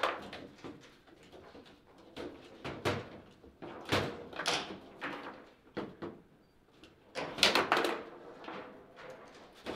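A foosball ball clacks and knocks against the players and table walls.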